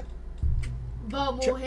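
A young person speaks close to a microphone.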